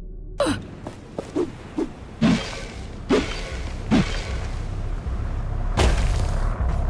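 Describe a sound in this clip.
Heavy footsteps thud on dirt as a figure runs.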